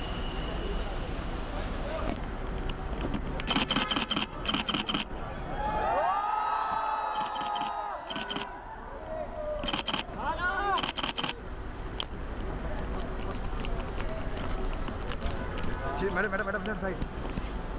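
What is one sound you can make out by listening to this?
An excited crowd of fans cheers and shouts outdoors.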